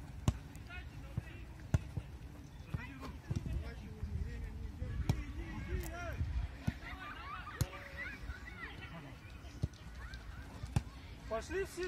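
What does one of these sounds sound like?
A football is kicked with sharp thumps on an outdoor pitch.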